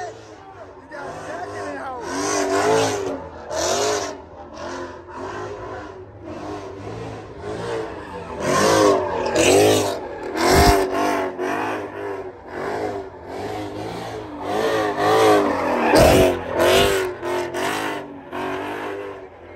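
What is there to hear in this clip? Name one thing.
Tyres squeal on pavement as a car spins.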